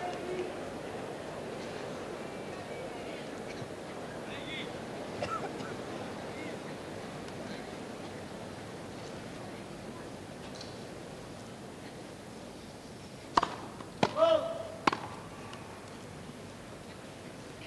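A crowd murmurs softly in the background.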